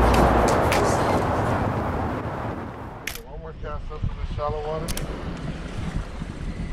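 Wind blows steadily outdoors over open water.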